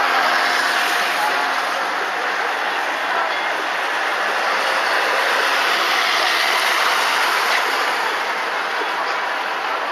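A van engine rumbles as the van drives slowly by.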